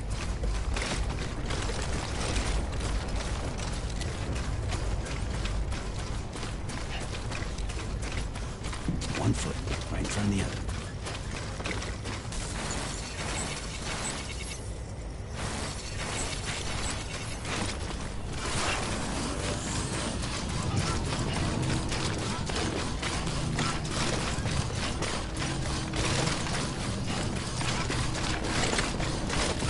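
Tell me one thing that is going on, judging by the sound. Heavy boots crunch steadily over rocky ground.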